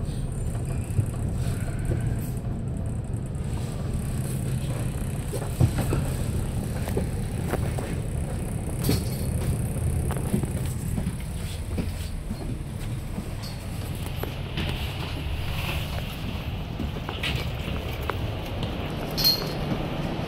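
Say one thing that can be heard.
Knocks and rattles sound now and then.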